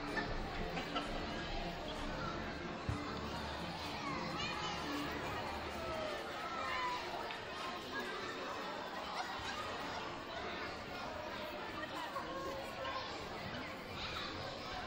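A crowd of children and adults chatters and calls out in a large echoing gym.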